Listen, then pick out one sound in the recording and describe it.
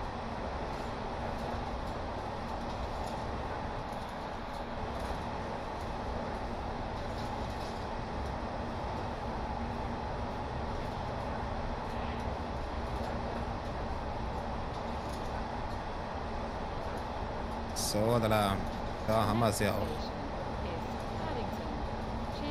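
A train rumbles steadily along the tracks through a tunnel.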